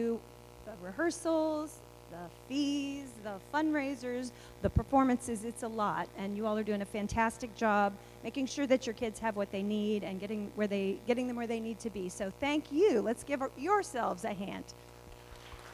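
A woman speaks calmly into a microphone in a large echoing hall.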